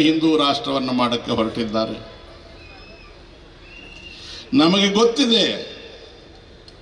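An elderly man speaks forcefully into a microphone over a loudspeaker, with pauses.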